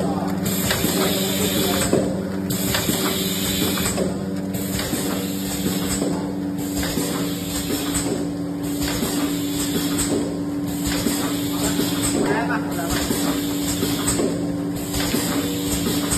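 Pneumatic parts hiss in short bursts.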